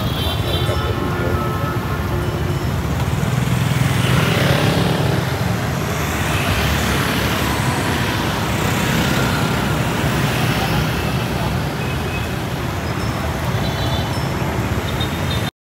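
A fountain splashes steadily.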